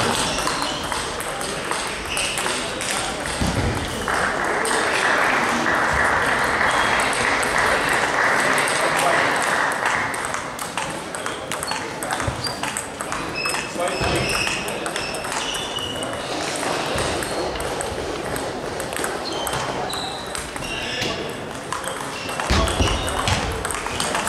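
A table tennis ball clicks against paddles and the table in an echoing hall.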